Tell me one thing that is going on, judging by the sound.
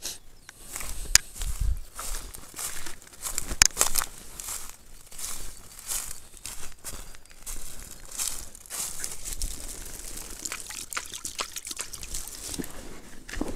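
Dry reeds crunch and rustle underfoot.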